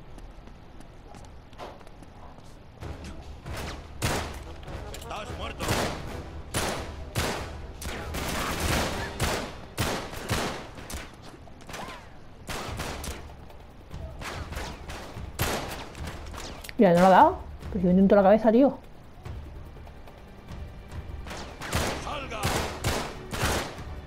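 Gunshots ring out one after another, echoing in a tunnel.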